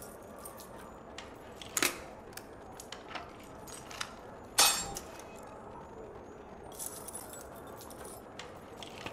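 Metal lock pins click sharply as a lock is picked.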